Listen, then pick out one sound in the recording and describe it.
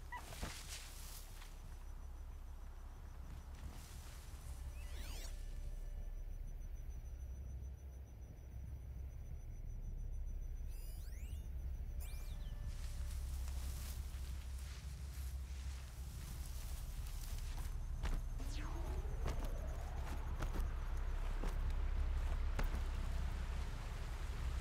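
Wind blows steadily outdoors with a low rumble.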